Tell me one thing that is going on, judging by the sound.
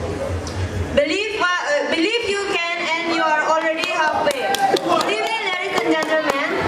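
A young woman speaks through a microphone and loudspeakers in a large echoing hall.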